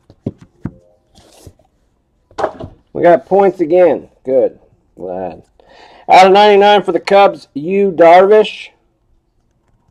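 Trading cards slide and rustle between fingers.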